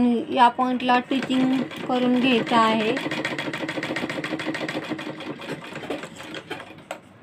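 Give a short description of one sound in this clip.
A sewing machine runs, stitching with a fast, rattling hum.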